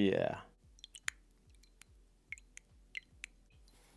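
A cookie clinks lightly against a glass of milk.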